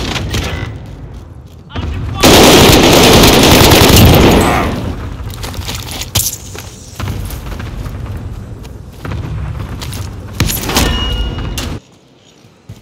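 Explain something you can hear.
Gunfire from a machine gun rattles in loud bursts.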